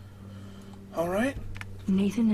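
A young man speaks close to a microphone in short, animated bursts.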